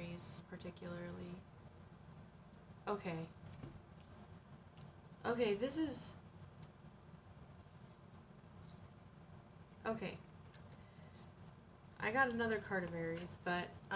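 A woman speaks softly in short bursts, close to a microphone.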